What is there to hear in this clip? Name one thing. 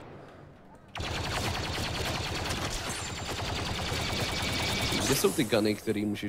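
Rapid laser blaster fire crackles in quick bursts.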